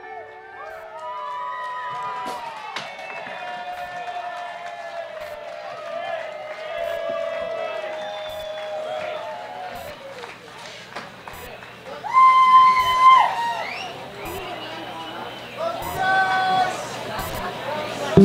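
A band plays live on an outdoor stage.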